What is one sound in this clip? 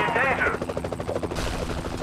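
A helicopter's rotor thumps overhead.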